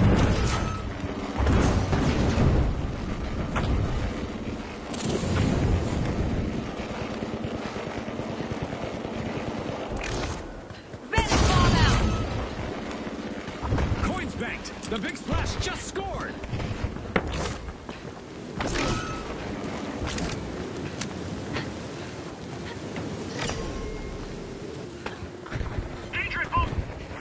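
Wind howls and roars through a sandstorm.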